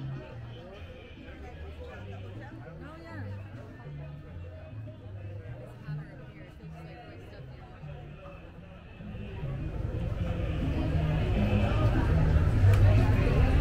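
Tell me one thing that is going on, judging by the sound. A crowd of people chatter outdoors, growing louder toward the end.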